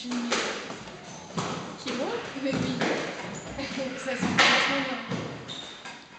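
A squash ball smacks against the walls of an echoing court.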